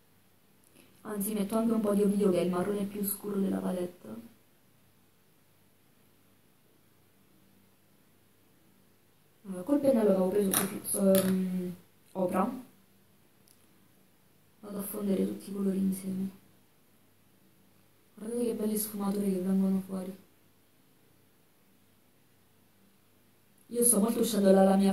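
A young woman talks calmly, in short bursts with pauses.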